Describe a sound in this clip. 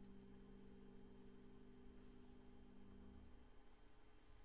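A piano plays soft, sustained notes that fade away.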